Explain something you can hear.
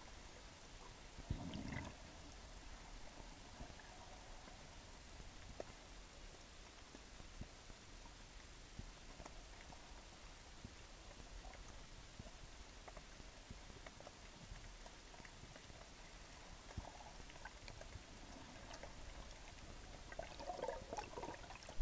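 Muffled underwater hiss with faint crackling and clicks.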